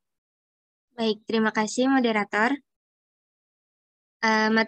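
A young woman speaks calmly into a microphone, heard as if through an online call.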